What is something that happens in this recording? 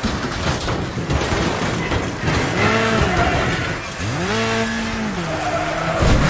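Metal crunches as vehicles crash together.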